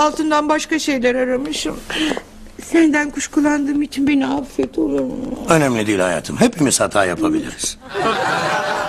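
A woman speaks emotionally and tearfully, close by.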